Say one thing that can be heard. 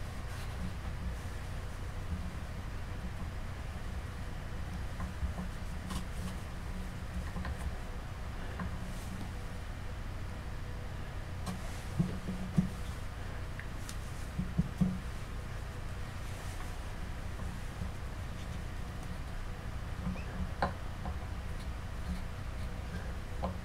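Hands rub and handle a soft sculpted head with faint rustling.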